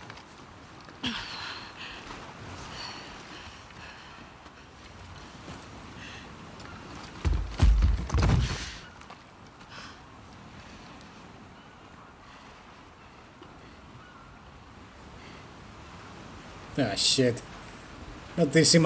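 A young woman breathes heavily and groans.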